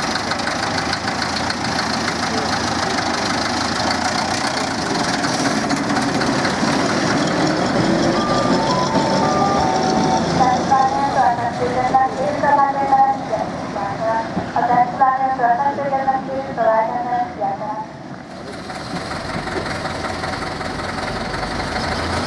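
A small diesel locomotive engine rumbles steadily.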